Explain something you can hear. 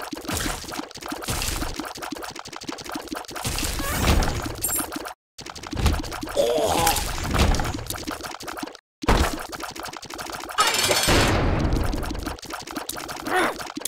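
Video game monsters squelch and splatter as they are hit.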